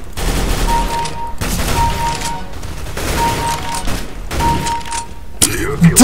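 Rifle shots ring out in quick bursts.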